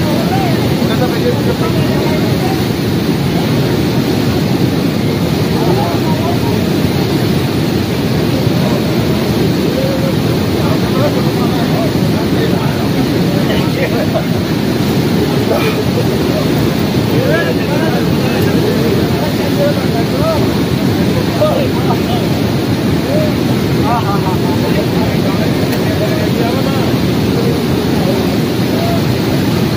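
A fast, swollen river roars close by.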